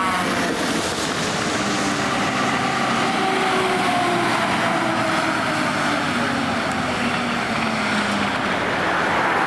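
A fire engine siren wails, dropping in pitch as it passes and moves away.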